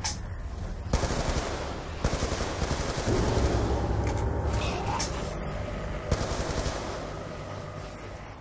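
Gunfire rattles in bursts amid loud game noise.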